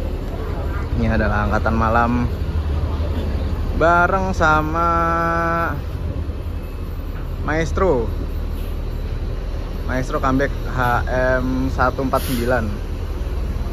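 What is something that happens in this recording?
A bus sounds a loud musical horn in short melodic bursts.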